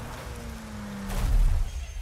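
An engine rumbles heavily.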